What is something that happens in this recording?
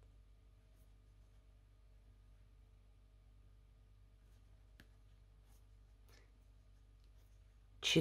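Yarn rustles softly as hands crochet.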